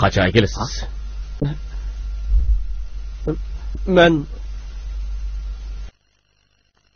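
Another man answers calmly in a low voice, close by.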